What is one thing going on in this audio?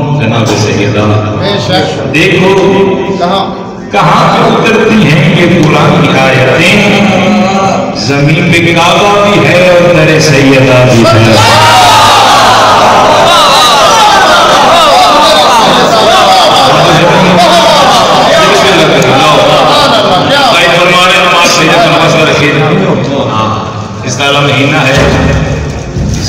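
A man speaks passionately and loudly into a microphone, heard through loudspeakers with echo.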